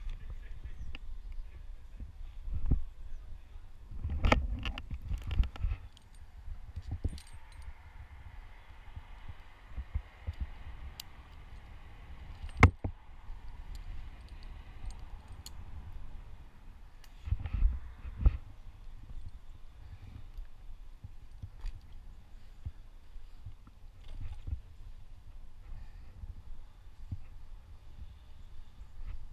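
Branches rustle and creak as a climber moves through a tree.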